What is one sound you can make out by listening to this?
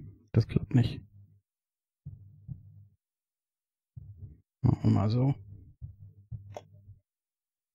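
Plastic parts click and rattle.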